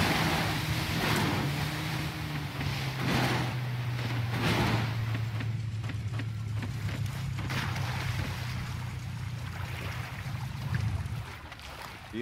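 A boat motor drones steadily and cuts off.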